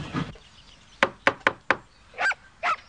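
A cane raps sharply on a wooden door.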